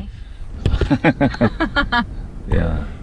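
A young woman laughs loudly in quick bursts close by.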